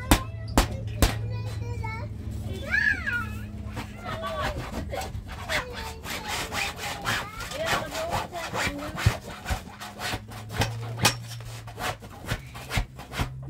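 A woman knocks sharply on a canvas tent with a hand tool.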